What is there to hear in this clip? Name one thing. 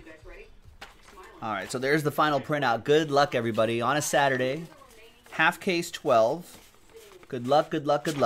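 A sheet of paper rustles as it is handled.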